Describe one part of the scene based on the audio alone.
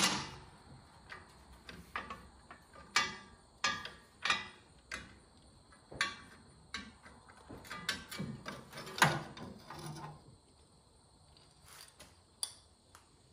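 Metal parts click and clank as hands work on a tractor alternator.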